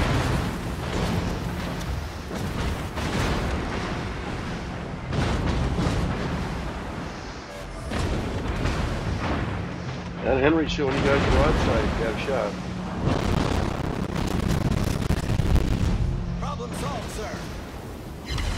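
Shells explode with deep blasts and splashes in water.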